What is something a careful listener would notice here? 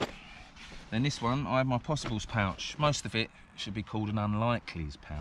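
A middle-aged man speaks calmly and close by, outdoors.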